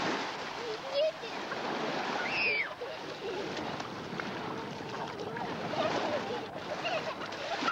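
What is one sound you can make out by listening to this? Small waves wash steadily onto a beach.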